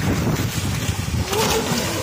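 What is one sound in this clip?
Water splashes loudly as a man jumps into a flooded field.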